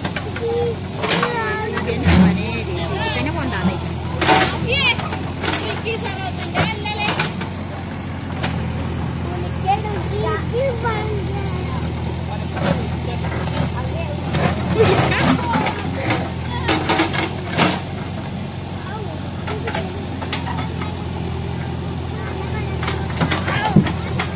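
A diesel engine of a backhoe loader rumbles steadily close by.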